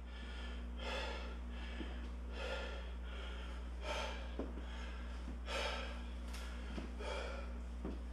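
A man breathes heavily in rhythmic bursts.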